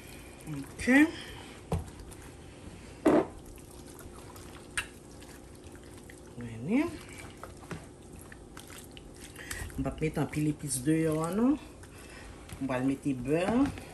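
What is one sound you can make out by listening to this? Wet meat squelches as hands rub and knead it in a bowl.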